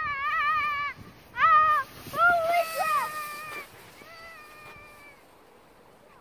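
A child shrieks and squeals with excitement.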